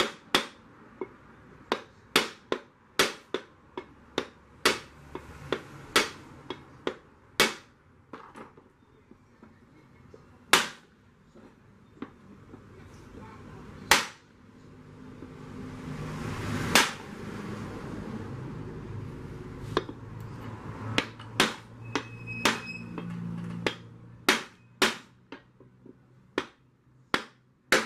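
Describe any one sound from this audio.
A hammer strikes metal in sharp, ringing blows.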